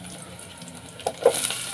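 A plate clinks down onto a metal pot.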